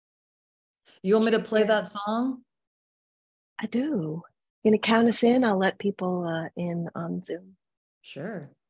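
An elderly woman speaks warmly over an online call.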